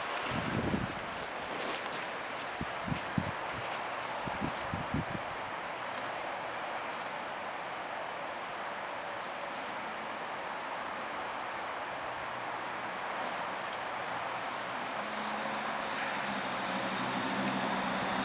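A horse chews hay with a crunching sound.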